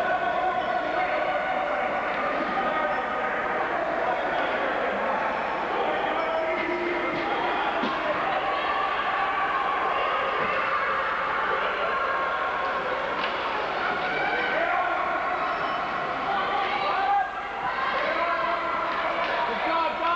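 Young children call out, echoing in a large hall.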